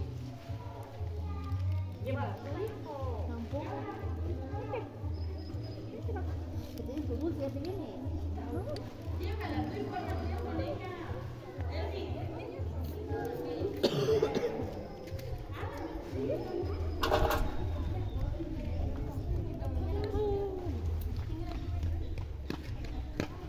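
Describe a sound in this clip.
Children chatter and call out in a crowd outdoors.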